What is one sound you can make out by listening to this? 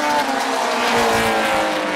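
Two cars bump into each other with a thud.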